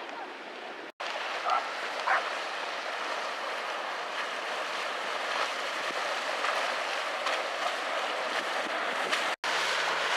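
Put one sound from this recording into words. A motorboat engine drones as the boat passes close by.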